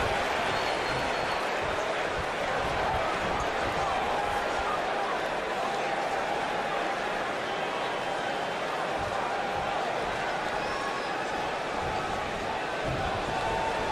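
Blows thud as wrestlers strike each other.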